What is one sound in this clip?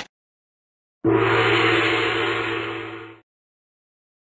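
A short cheerful jingle plays as a prize is revealed.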